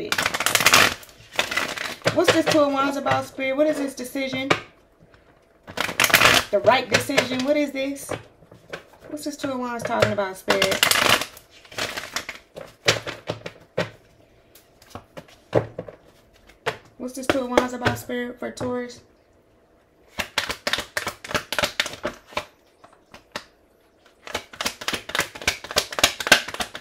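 Playing cards riffle and slap as they are shuffled by hand.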